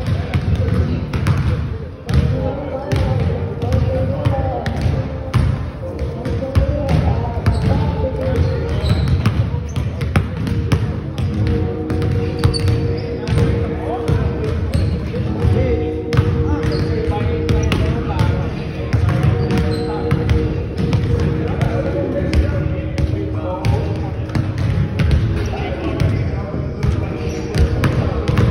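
Teenagers chatter and call out loudly in an echoing hall.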